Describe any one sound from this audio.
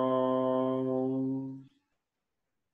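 A man hums a long, steady note close by.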